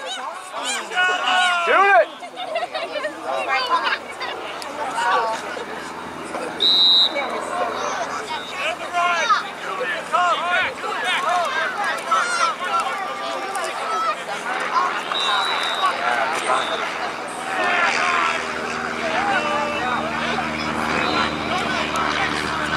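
Young players and spectators shout and call out across an open outdoor field.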